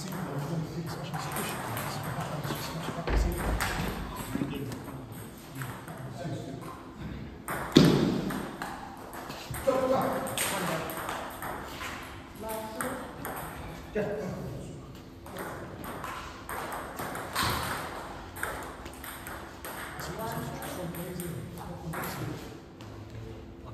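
A ping pong ball clicks back and forth on paddles and tables in a large echoing hall.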